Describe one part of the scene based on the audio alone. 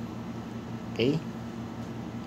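A television switches on with a short rising tone.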